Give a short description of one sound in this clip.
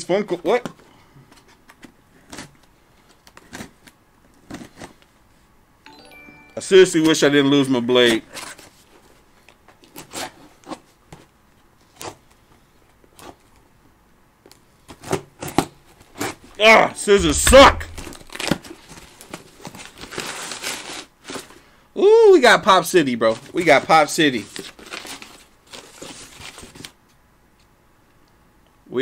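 Cardboard packaging rustles and crinkles as a box is opened.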